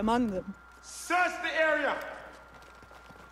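A man shouts an order.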